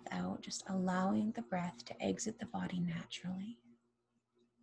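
A woman speaks calmly and softly into a close microphone.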